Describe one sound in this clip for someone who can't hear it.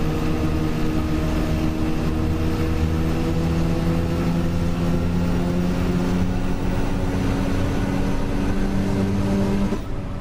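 A bus engine hums steadily while driving, then cuts off near the end.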